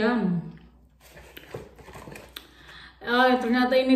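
A paper package rustles and crinkles.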